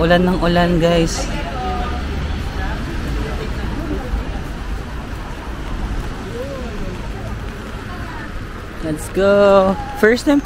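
Rain patters steadily on umbrellas outdoors.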